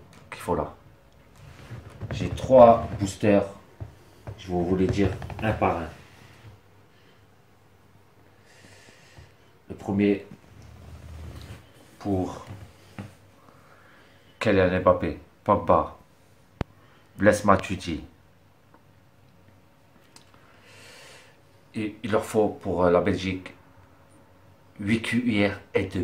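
A young man talks calmly and close to a microphone, in short bursts with pauses.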